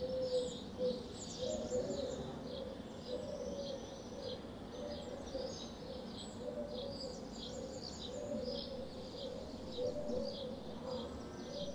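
Birds chirp and twitter high overhead, outdoors.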